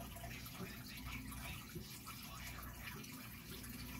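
Air bubbles fizz and gurgle steadily in water.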